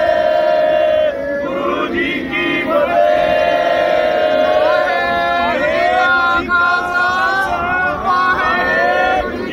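A group of men sing a chant together close by.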